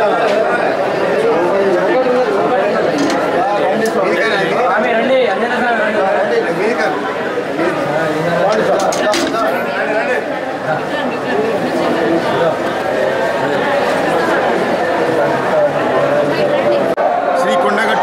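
A crowd of men murmurs in a packed, echoing room.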